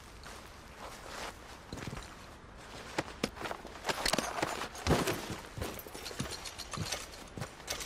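Footsteps crunch on snowy gravel.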